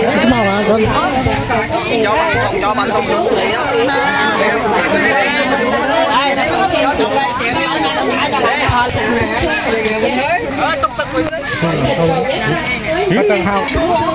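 A crowd of men and women chatters loudly nearby outdoors.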